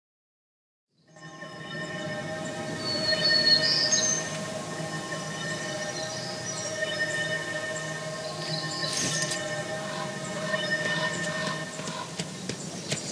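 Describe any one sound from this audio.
Gentle game music plays with sustained tones.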